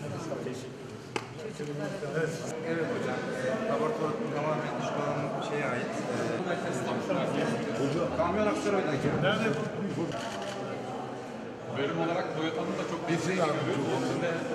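A crowd of men and women murmurs in a large echoing hall.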